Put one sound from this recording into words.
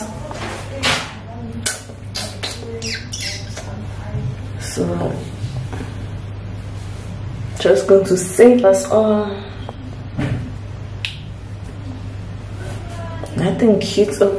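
A young woman talks casually and with animation, close by.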